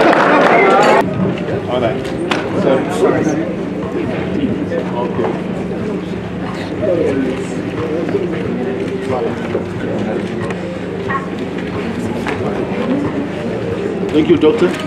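Men talk and chatter quietly nearby.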